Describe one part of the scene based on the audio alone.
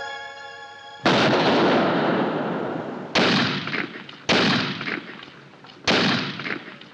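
Loud gunshots ring out and echo away.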